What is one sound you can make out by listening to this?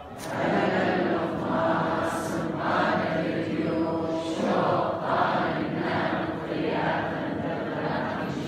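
A large congregation sings together in a big echoing hall.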